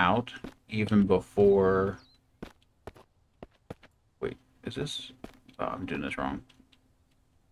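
A metal locker door clanks open and shut.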